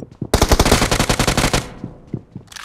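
An automatic rifle fires a rapid burst.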